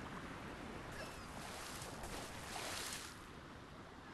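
Water splashes as a dolphin breaks the surface.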